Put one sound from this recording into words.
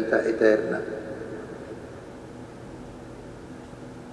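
A man reads aloud into a microphone in a large echoing hall.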